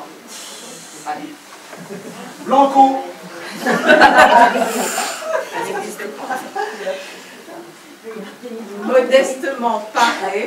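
Elderly men and women talk calmly nearby.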